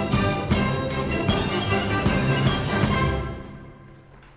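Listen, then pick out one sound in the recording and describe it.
A large drum beats a rhythm.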